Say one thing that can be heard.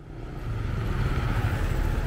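A motorcycle passes close by.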